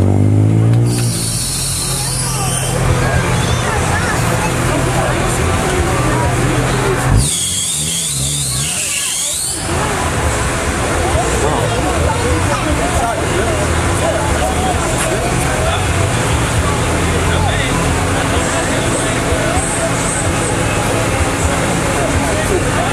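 A sports car engine rumbles low as the car creeps forward.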